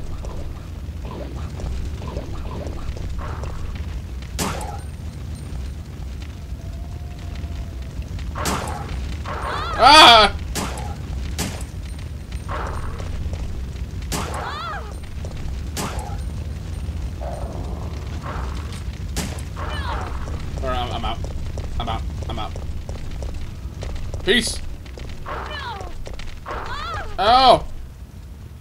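A fire roars and crackles steadily.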